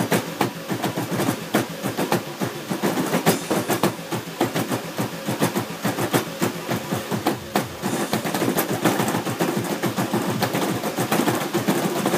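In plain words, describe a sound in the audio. Loud electronic dance music plays from an arcade machine.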